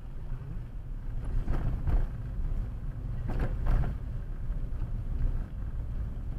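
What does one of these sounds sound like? A car engine hums steadily and tyres rumble on the road from inside the car.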